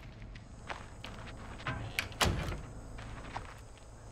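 A door lock clicks open.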